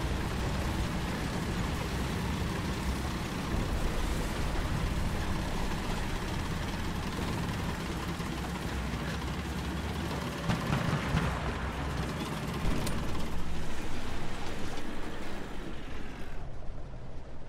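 A tank engine rumbles as the tank drives.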